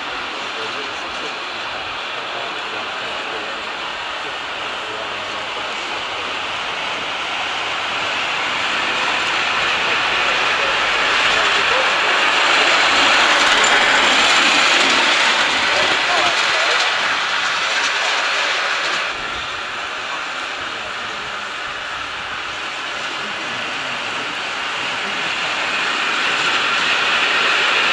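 Wheels rattle on a narrow rail track.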